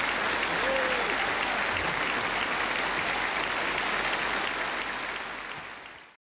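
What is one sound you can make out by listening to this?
A large crowd applauds loudly in a big hall, then the applause fades.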